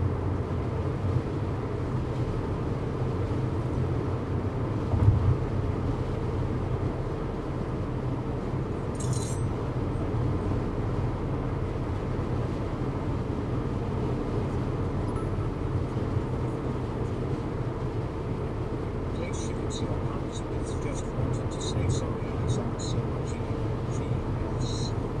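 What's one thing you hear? A car's engine hums steadily, heard from inside the car.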